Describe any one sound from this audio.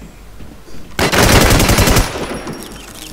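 Gunshots ring out at close range.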